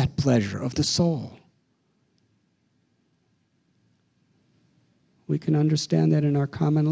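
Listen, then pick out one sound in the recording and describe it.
A middle-aged man speaks calmly into a microphone, pausing between phrases.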